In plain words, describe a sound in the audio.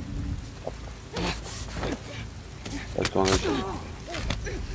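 Bodies scuffle and thud in a short, close struggle.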